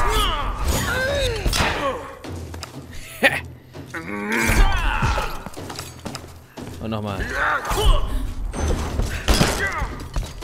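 Heavy blows and thuds land in a fight.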